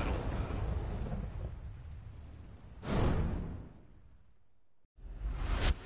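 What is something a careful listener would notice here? A burst of fiery whooshing swells and fades.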